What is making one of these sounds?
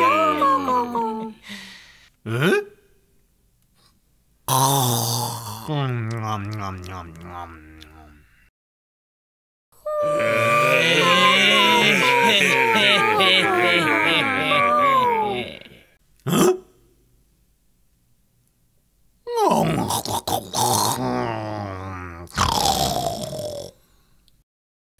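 A man speaks with animation in a put-on character voice through a loudspeaker, with pauses.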